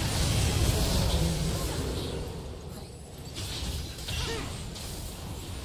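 Magic blasts and spell effects crackle and boom in a video game battle.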